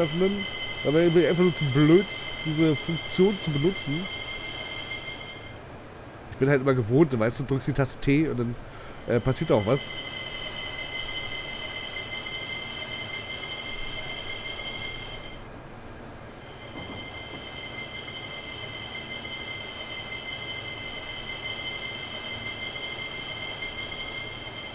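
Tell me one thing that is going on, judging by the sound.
A train's cab hums with a steady electric whine.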